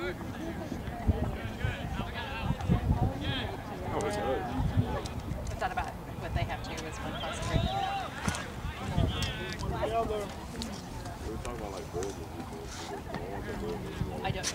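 Young players shout to each other in the distance outdoors.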